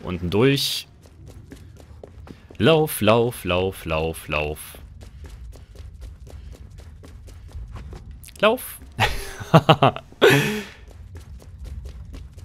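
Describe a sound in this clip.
Quick footsteps run on a stone floor.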